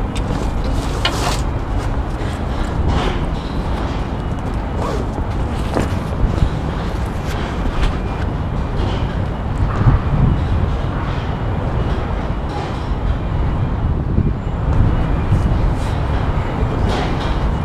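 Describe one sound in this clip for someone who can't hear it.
Hands knock and scrape against metal girders.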